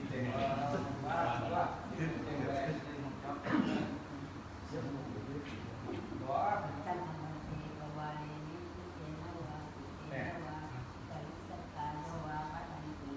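A group of men chant together in low voices.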